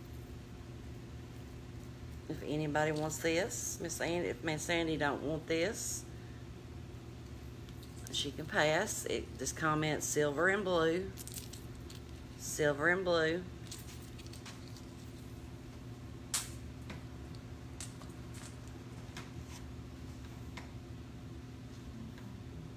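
Beaded necklaces clink softly in a hand.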